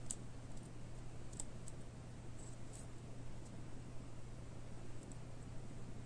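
Plastic nail swatch sticks click lightly against each other.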